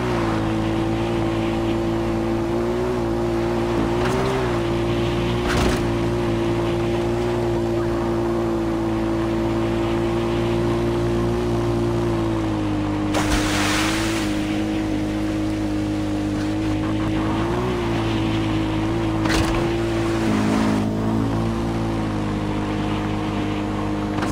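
Tyres roll over gravel.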